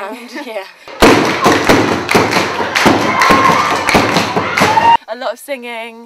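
A group of girls sings loudly together.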